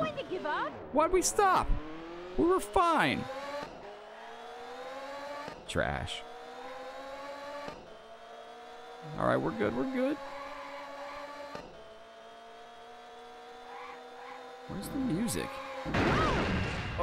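A racing car engine roars and climbs in pitch as it speeds up through the gears.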